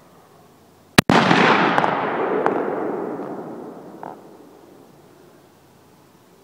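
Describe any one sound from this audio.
A rifle shot cracks loudly and rolls away in a long echo.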